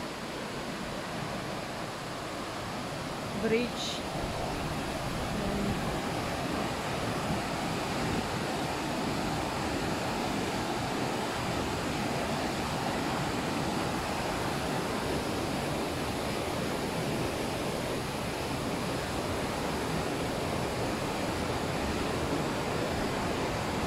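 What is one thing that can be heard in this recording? Water rushes loudly over a weir, with a steady roar.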